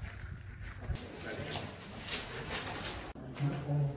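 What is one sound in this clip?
Footsteps walk along a stone floor.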